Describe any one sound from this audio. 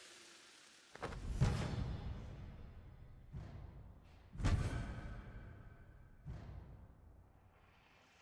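Loud chimes ring out twice and slowly fade.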